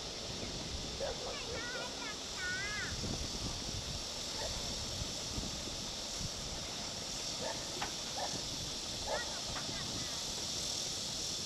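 Water laps gently against a stone harbour wall.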